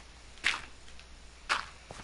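Dirt blocks crunch as they are dug out.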